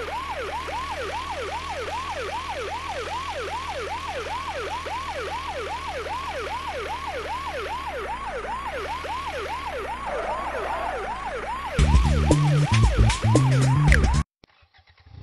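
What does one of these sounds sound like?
A siren wails rapidly up and down.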